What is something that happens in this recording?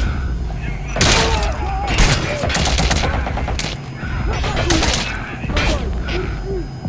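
Gunshots crack in short, loud bursts.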